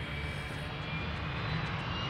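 A jet plane roars overhead.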